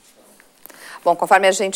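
A middle-aged woman speaks calmly into a close microphone.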